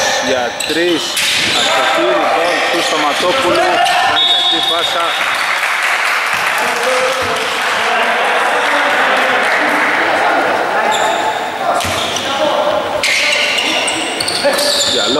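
Men shout and call out across an echoing hall.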